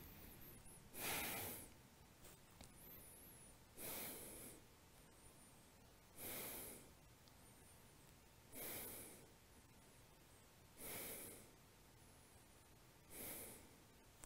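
A man breathes out deeply and slowly, close by, at a steady pace.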